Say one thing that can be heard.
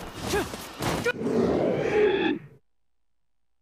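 A magical surge whooshes and swells, then cuts off into silence.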